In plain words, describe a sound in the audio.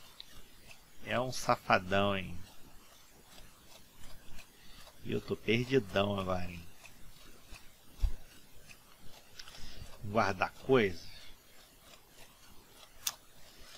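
Footsteps run across wooden boards.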